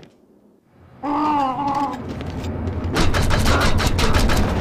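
A creature growls and snarls.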